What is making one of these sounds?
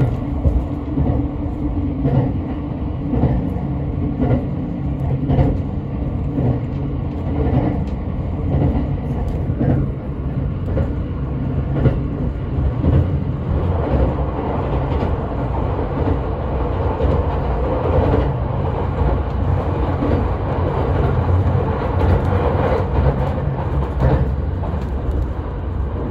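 Train wheels click over rail joints at a regular beat.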